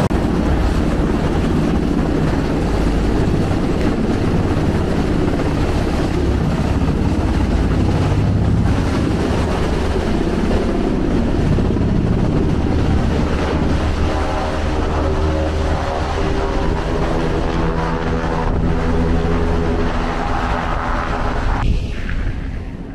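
Wind blows hard over open water.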